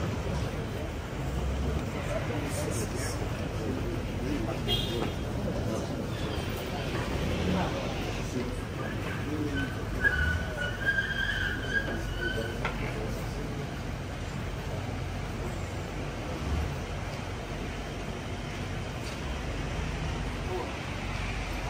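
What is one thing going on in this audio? A crowd of men murmurs and chats nearby.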